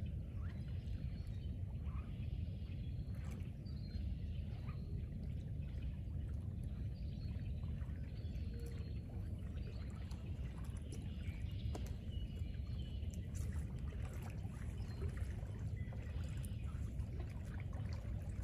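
Water splashes softly as a person wades through it.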